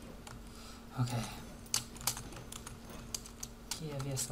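Gold coins clink as they are picked up in a video game.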